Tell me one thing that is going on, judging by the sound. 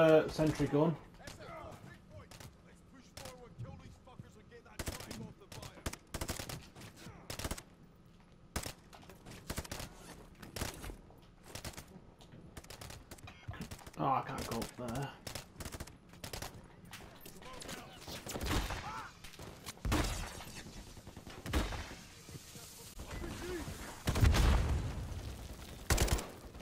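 Gunshots crack and echo in an enclosed space.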